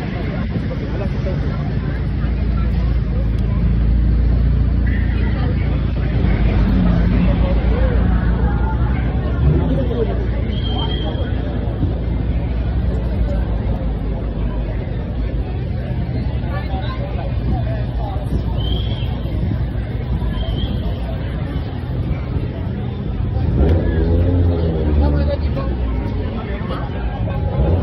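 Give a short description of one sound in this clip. A busy street crowd chatters outdoors.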